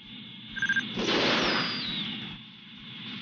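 A missile launches with a loud whoosh.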